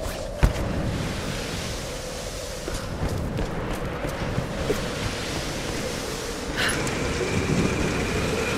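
Waves wash steadily against a rocky shore.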